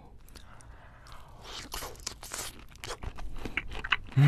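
A young man chews and slurps wet food close to a microphone.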